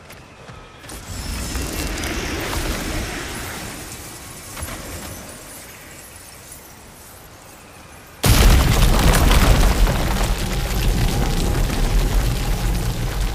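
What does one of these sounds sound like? Footsteps crunch on earth and grass.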